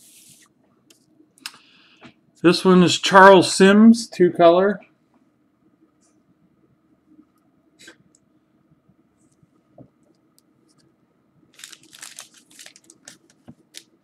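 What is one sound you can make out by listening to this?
Cardboard cards rustle and scrape softly as hands handle them.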